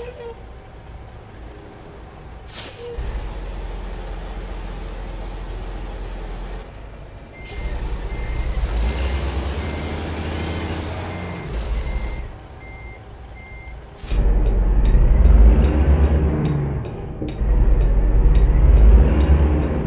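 A truck's diesel engine idles and rumbles loudly.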